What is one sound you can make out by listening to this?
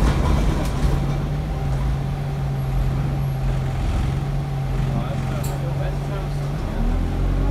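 A bus rattles and vibrates as it drives.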